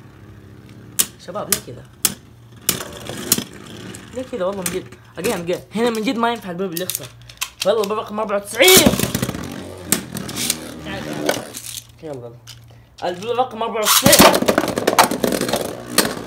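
Spinning tops clash with sharp metallic clicks.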